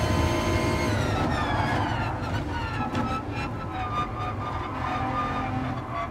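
A racing car engine winds down as the car brakes for a corner.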